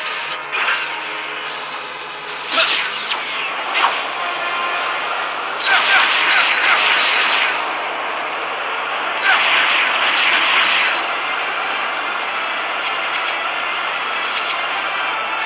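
Plastic bricks clatter and scatter as objects smash apart.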